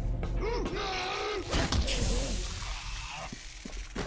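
Gunshots bang sharply.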